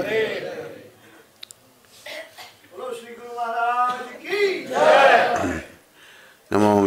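An elderly man speaks and chants slowly into a microphone, close by.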